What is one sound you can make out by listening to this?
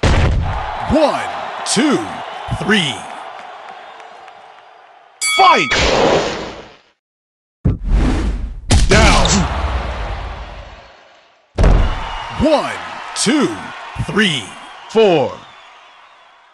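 Punches land with heavy thuds and whooshing swings.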